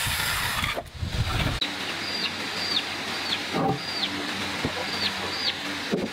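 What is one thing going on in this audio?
A heavy wooden board bumps and knocks against wood.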